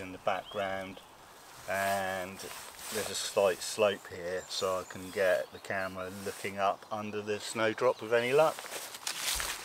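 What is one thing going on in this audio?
A middle-aged man talks calmly.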